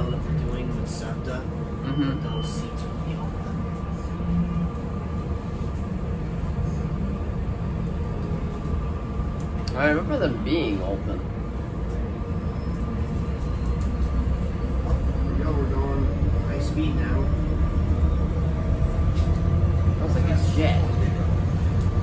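Train wheels click and squeal on the rails.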